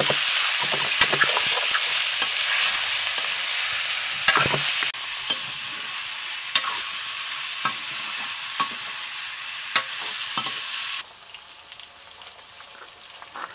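A metal ladle clinks and scrapes against a metal pan.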